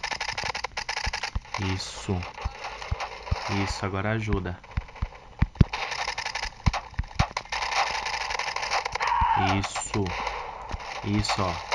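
A rifle fires in short bursts.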